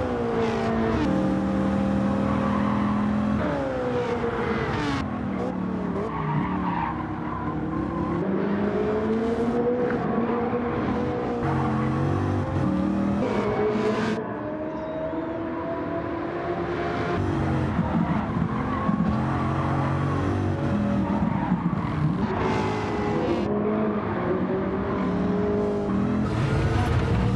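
Racing car engines roar and rev, rising and falling in pitch as gears shift.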